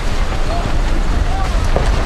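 A sail flaps and rustles loudly.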